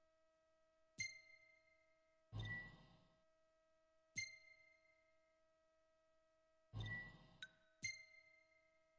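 Short electronic menu beeps sound several times.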